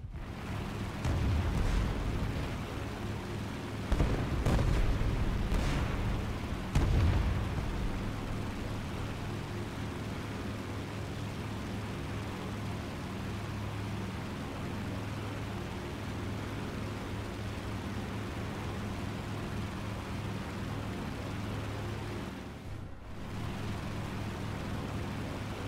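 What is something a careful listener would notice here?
Propeller engines drone steadily.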